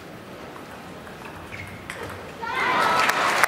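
A ball knocks back and forth on a table tennis table.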